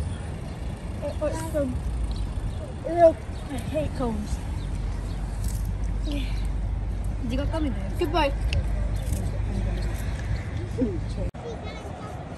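Young children talk and chatter close by.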